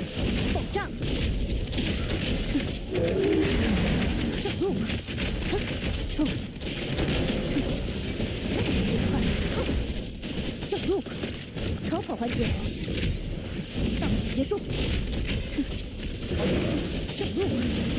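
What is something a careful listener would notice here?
Game sound effects boom and crash with rapid hits and explosions.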